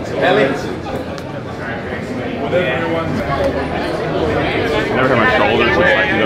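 Several men talk and chat casually nearby in an echoing room.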